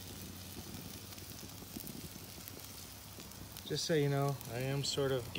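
Meat sizzles and crackles on a hot grill.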